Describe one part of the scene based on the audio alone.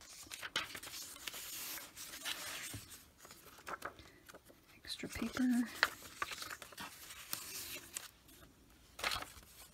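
Stiff paper slides in and out of a paper pocket.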